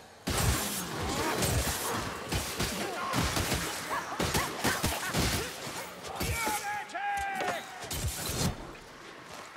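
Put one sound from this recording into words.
Blades slash and hack into flesh with heavy wet thuds.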